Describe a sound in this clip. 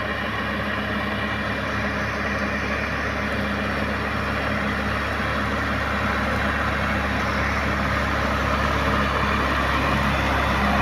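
A tractor's plough rattles through the soil.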